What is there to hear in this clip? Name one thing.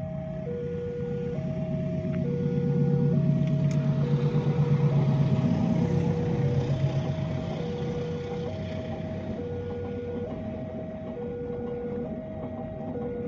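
A train rumbles past on the tracks.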